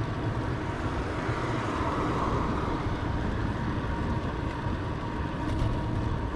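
A car drives by on the road.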